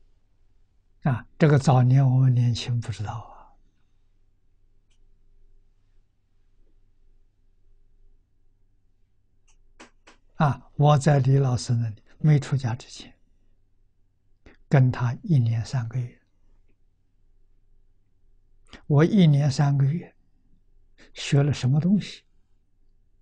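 An elderly man speaks calmly into a clip-on microphone, with long pauses.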